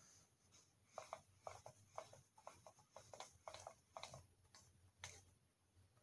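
Light footsteps tap on a hard floor.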